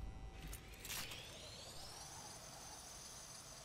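A pulley whirs along a zip line cable, rising in pitch.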